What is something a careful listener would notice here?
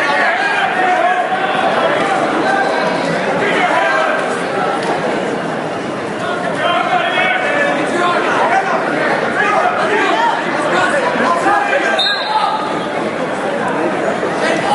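A crowd of spectators chatters and calls out throughout in an echoing gym.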